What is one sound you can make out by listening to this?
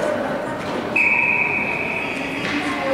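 A referee's whistle blows a short, shrill blast.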